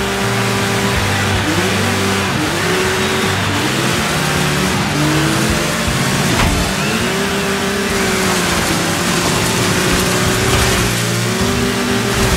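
Several buggy engines drone together nearby.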